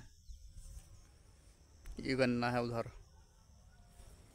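Wind rustles through tall grass.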